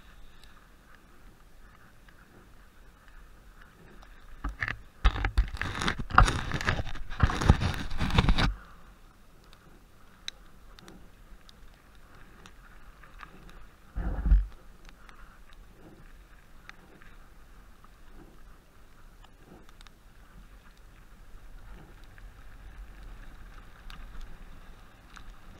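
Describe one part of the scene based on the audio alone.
Bike tyres crunch and roll over snow.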